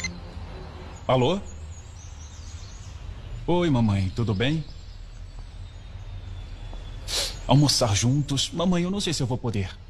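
A young man talks calmly into a phone, close by.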